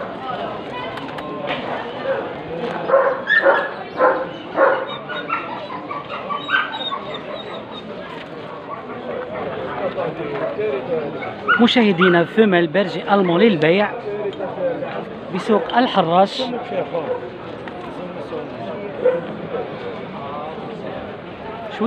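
A crowd of men chat and call out nearby outdoors.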